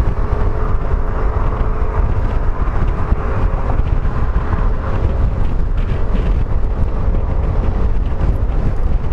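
Wind rushes loudly past the rider.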